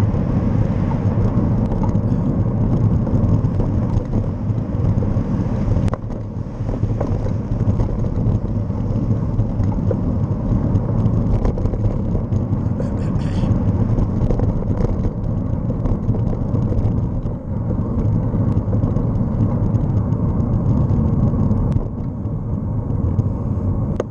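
Wind rumbles loudly and steadily against a moving vehicle.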